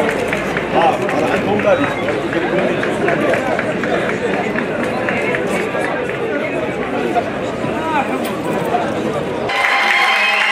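A group of young people chatter and call out close by.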